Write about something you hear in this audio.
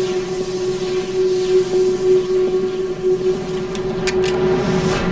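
An electric hum drones steadily.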